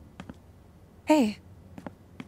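A young woman greets someone warmly.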